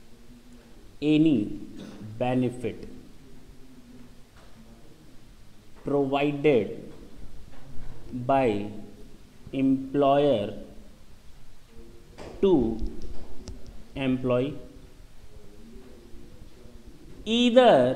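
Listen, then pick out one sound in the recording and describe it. A man speaks calmly in short phrases, with pauses.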